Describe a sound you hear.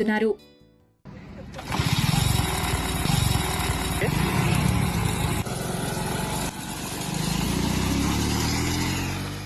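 A small motor vehicle engine rumbles and putters as it drives along.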